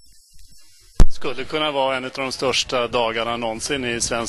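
An older man speaks loudly and close to a microphone.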